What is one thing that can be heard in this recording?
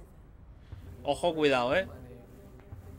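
A man asks a question in a tense voice.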